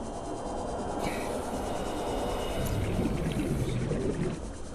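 Bubbles fizz and gurgle in the water.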